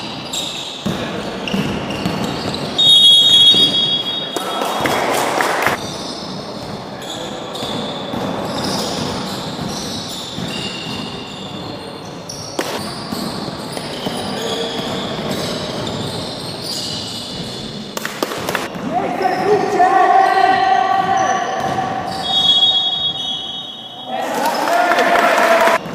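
Sneakers squeak on a hard floor in an echoing hall.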